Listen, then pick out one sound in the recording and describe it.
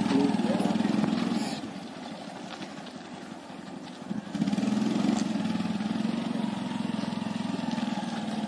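A motorcycle engine idles and putters close by.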